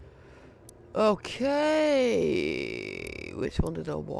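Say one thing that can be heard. A monster roars with a deep, bending growl.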